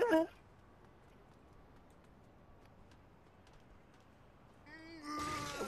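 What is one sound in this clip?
Footsteps patter quickly on a hard rooftop.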